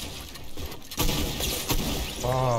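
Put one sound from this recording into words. A shotgun fires in a video game.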